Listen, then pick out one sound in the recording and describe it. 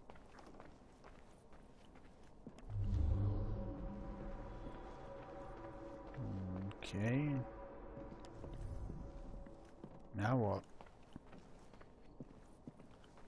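Soft footsteps pad slowly across a wooden floor.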